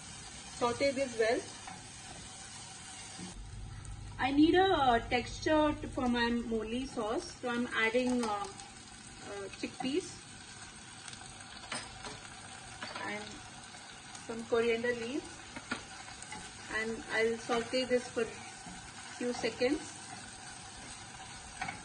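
A silicone spatula stirs food in a saucepan.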